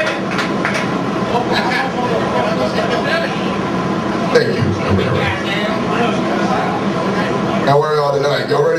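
A band plays loud, distorted electric guitars.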